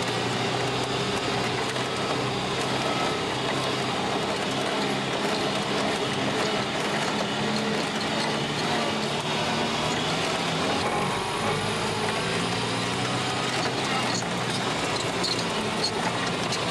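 A vehicle body rattles and bumps over uneven ground.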